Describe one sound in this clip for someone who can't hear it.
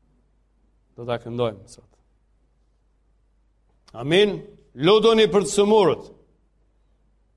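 A middle-aged man speaks with emphasis, pausing between phrases.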